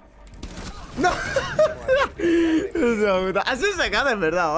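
A young man shouts and laughs excitedly into a close microphone.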